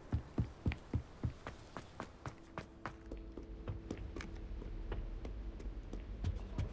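Quick footsteps run on hard stone floors.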